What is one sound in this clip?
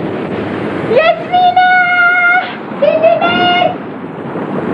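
A young boy calls out loudly across the water.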